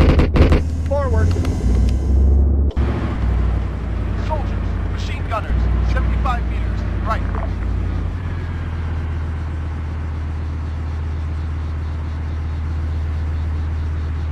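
A tank engine rumbles low and steadily.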